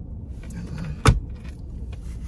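A car armrest lid snaps shut with a click.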